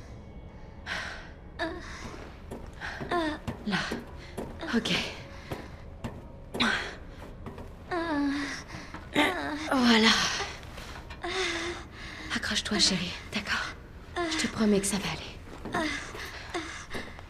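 A young woman speaks softly and reassuringly, close by.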